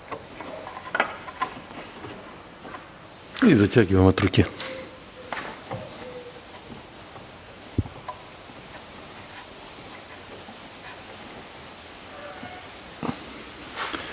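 A hand turns a metal plug with faint scraping clicks.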